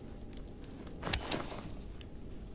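A blade strikes a body with a heavy thud.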